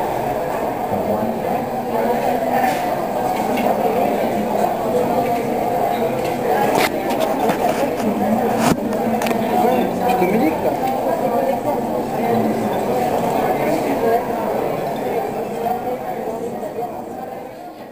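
A crowd of adults murmurs and chatters in a busy room.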